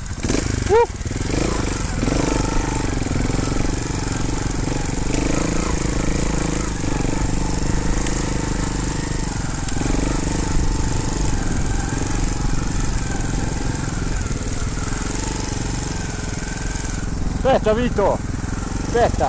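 A motorbike engine drones steadily at low speed.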